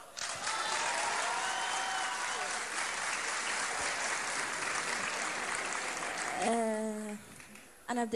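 A large audience cheers and applauds loudly in a big hall.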